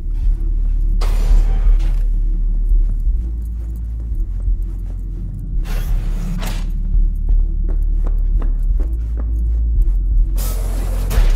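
A heavy door slides open with a rushing whoosh.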